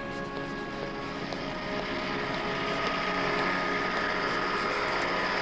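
A marker squeaks across cardboard.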